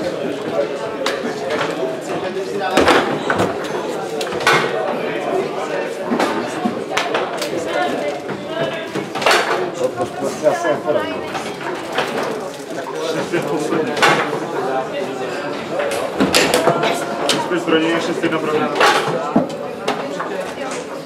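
Table football rods rattle and spin sharply.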